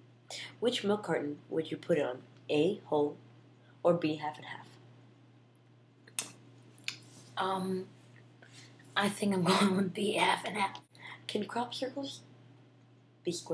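A young woman reads out questions with animation, close by.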